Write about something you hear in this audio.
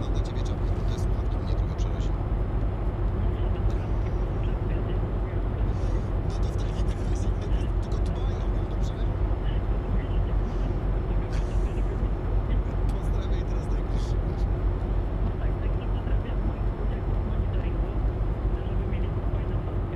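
Tyres roll with a low steady rumble on the road.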